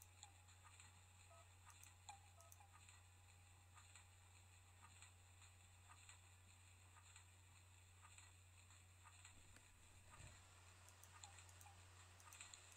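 Short electronic game blips and clicks sound now and then.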